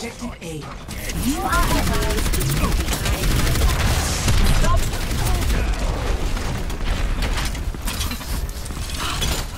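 A weapon fires rapid energy shots.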